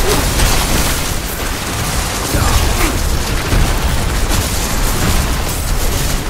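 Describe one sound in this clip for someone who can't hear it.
Many blows and magic hits thud and crash steadily.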